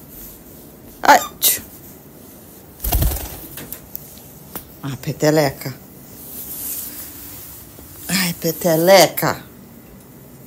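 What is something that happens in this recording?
A cockatiel chirps and whistles close by.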